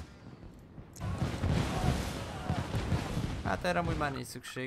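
Fireworks burst and crackle.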